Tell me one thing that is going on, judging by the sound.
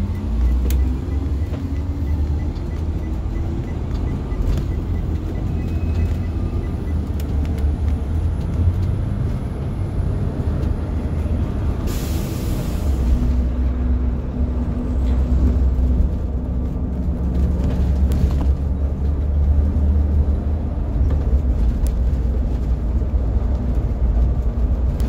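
A large vehicle's engine rumbles and drones steadily from close by.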